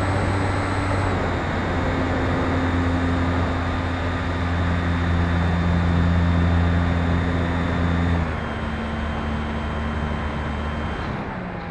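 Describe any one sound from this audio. A small model plane's electric motor hums steadily, dropping in pitch as it throttles back.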